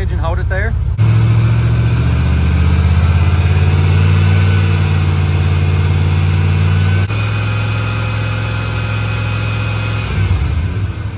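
A car engine revs up and holds a steady high hum.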